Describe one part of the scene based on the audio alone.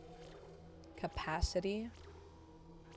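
A young woman speaks briefly and casually into a close microphone.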